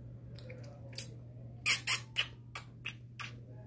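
A young girl smacks her lips.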